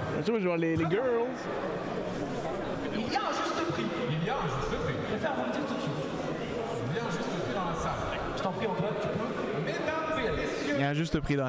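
A large crowd cheers and roars in a big hall.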